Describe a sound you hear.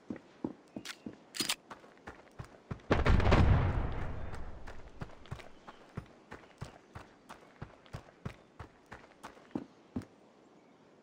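Quick footsteps tap steadily on hard ground.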